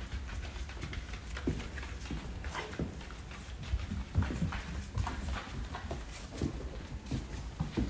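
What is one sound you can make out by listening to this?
Dog claws click and patter on a wooden floor.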